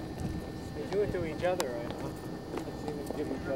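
A man talks briefly nearby.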